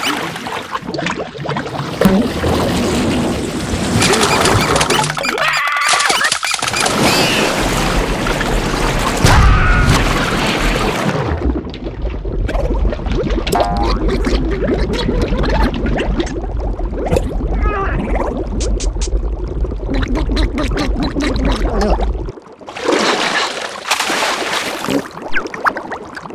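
Water bubbles and gurgles underwater.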